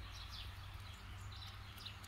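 A young fox laps water from a bowl.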